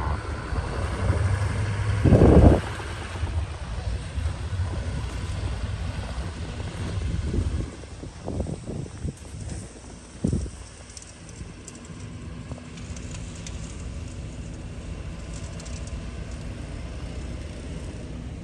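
A snow plow blade scrapes and pushes snow.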